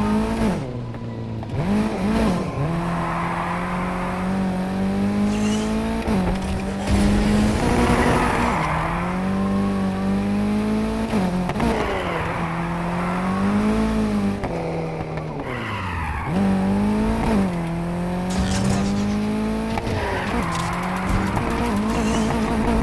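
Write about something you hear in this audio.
Exhaust pops and crackles from a car.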